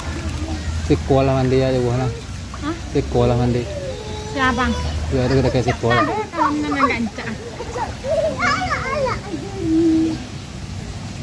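A child's voice chatters and calls out close by.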